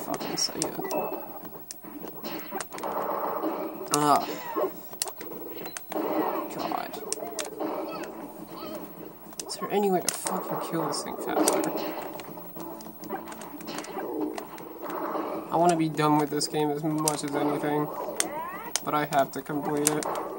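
Punches and impacts land in quick bursts from a video game.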